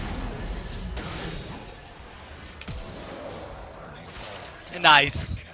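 Magic spells crackle and whoosh in a fast fight.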